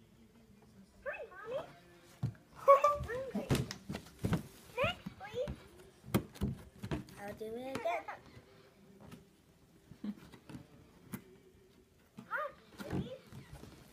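A young girl speaks excitedly close by.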